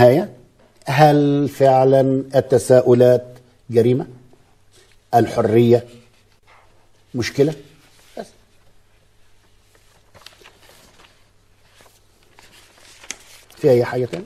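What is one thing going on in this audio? An elderly man speaks calmly and firmly, close to a microphone, with pauses.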